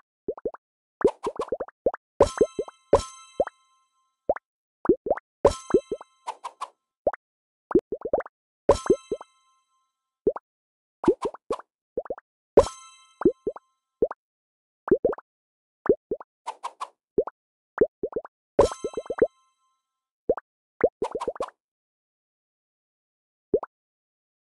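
Short game pops and plinks sound as cake slices drop onto plates.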